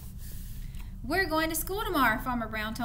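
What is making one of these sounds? A woman reads aloud clearly and expressively into a nearby microphone.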